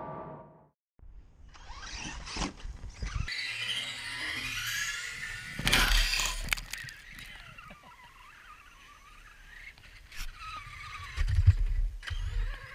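A small electric motor whines as a toy truck races past.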